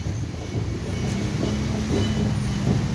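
A van engine hums as it drives past.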